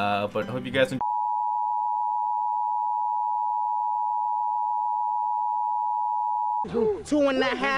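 A steady high-pitched test tone beeps.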